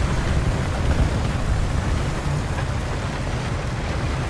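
Water splashes as a tank drives into a river.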